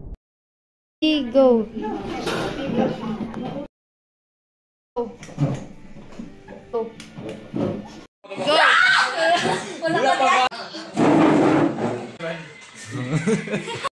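Teenage boys and girls laugh loudly close by.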